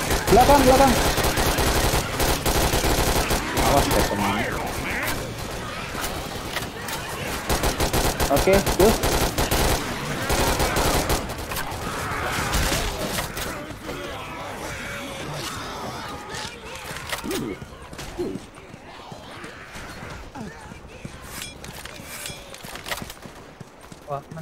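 Rapid gunfire rattles loudly, in bursts.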